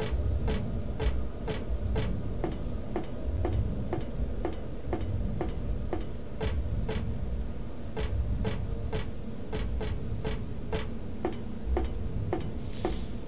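Footsteps run at an even pace.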